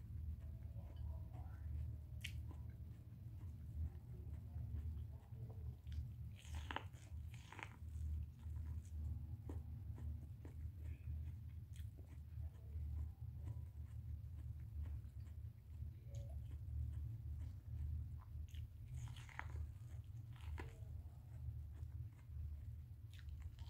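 A woman bites and chews corn crunchily, close by.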